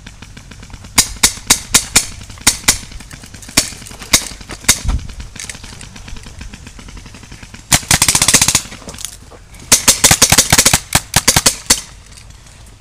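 Paintball guns fire in quick bursts of sharp pops outdoors.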